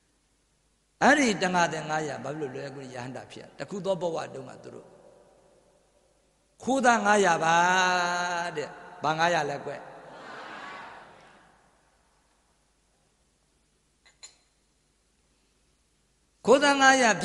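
An elderly man chants in a strong, wavering voice through a microphone, in an echoing hall.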